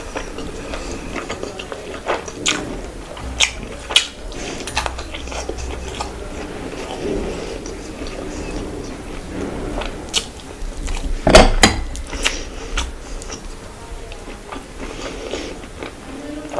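A young woman chews food loudly and wetly close to a microphone.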